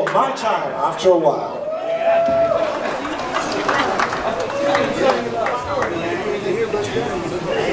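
A live band plays loudly in a large hall.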